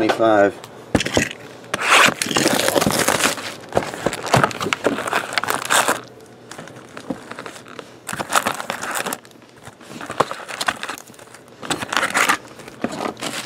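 Foil card packs rustle and crinkle as hands shuffle them.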